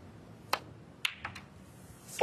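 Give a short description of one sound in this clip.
Balls click together on the table.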